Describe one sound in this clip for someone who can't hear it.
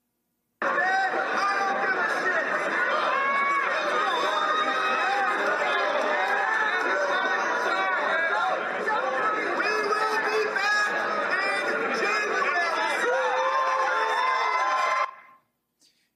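A crowd of men shout and chant loudly in an echoing indoor space.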